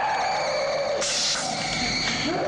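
A ray gun fires with a short burst of hiss.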